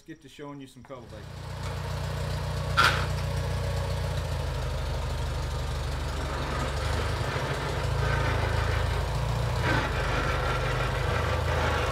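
A tractor engine idles with a low steady rumble.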